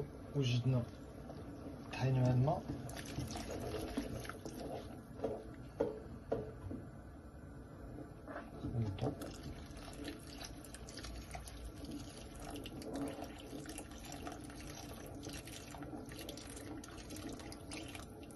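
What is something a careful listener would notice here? A wooden spoon stirs a simmering pot.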